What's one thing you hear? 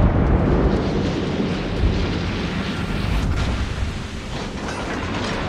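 Ship guns fire in rumbling booms.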